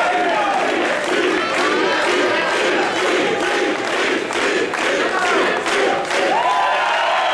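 A crowd claps along in a quick rhythm.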